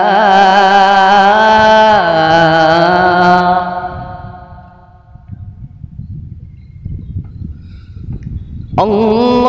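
A man chants loudly in long, drawn-out melodic phrases.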